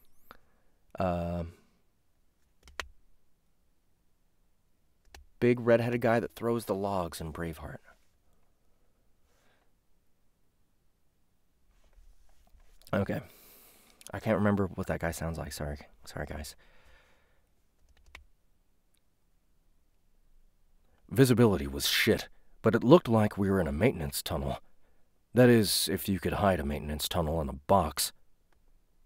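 A young man talks casually and thoughtfully into a close microphone, with pauses.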